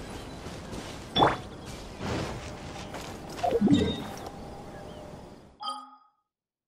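Game combat sound effects whoosh and clash.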